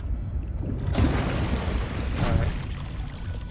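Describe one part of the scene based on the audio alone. A hatch opens with a whoosh of draining water.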